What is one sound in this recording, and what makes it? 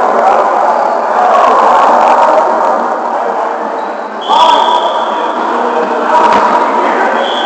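Several men talk at the same time in a large, echoing hall.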